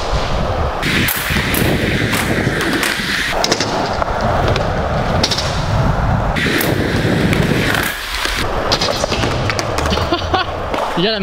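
Skateboard decks clack against the ground.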